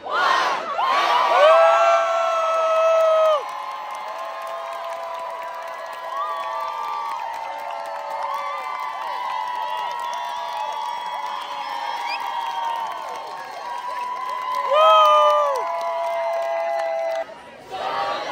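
A large crowd sings a long, drawn-out song together.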